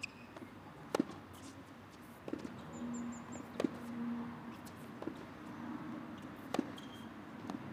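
A tennis ball is struck by rackets in a rally outdoors.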